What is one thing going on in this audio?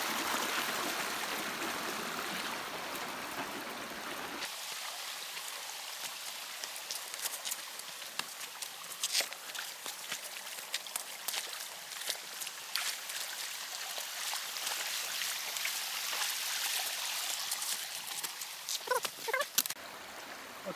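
A stream trickles and gurgles over rocks.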